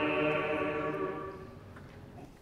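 A man sings a held note through a microphone in an echoing hall, and the note fades away.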